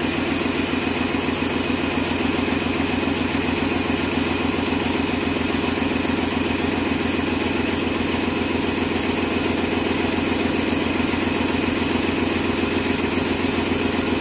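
A paint sprayer pump motor hums and rattles steadily close by.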